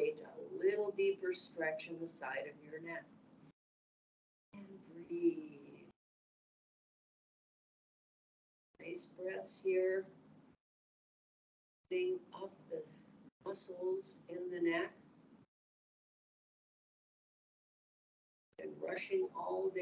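A middle-aged woman speaks calmly through a microphone, giving gentle instructions with pauses.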